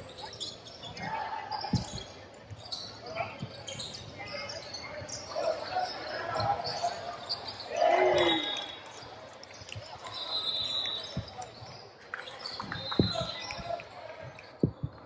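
Young male players call out to each other.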